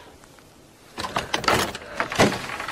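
A metal door knob rattles as it turns.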